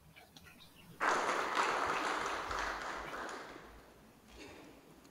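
An audience applauds in a large hall and the clapping slowly fades.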